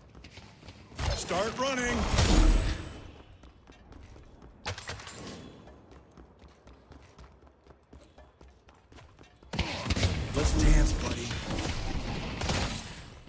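Electric blasts crackle and burst in a game.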